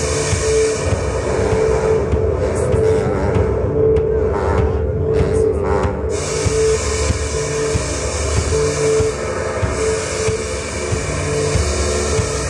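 A woman plays a keyboard.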